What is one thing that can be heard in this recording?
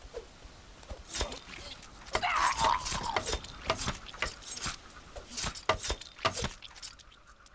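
A weapon strikes a body with heavy thuds.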